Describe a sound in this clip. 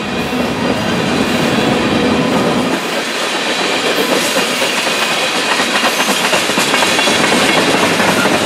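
A freight train of tank cars rolls past close by, its wheels rumbling on the rails.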